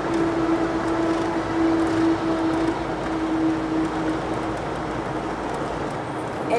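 A car's engine and tyres hum steadily from inside the car as it drives along a road.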